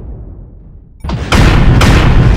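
Heavy guns fire in loud roaring blasts.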